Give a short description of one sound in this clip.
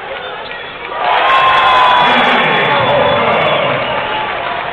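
A crowd cheers loudly in an echoing arena, then settles.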